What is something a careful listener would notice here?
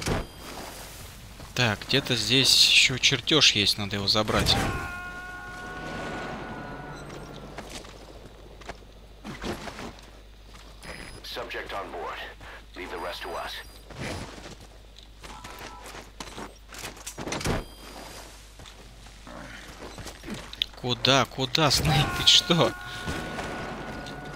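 Footsteps thud quickly on dirt ground.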